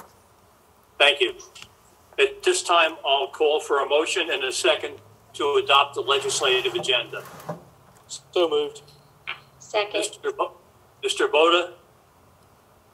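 An elderly man speaks calmly over an online call.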